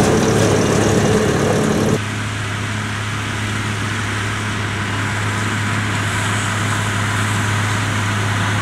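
A baler clatters as it rolls over the field.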